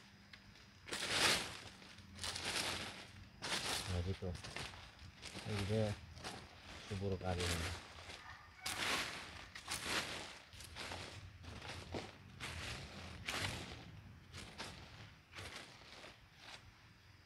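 A tool scrapes and digs into soil.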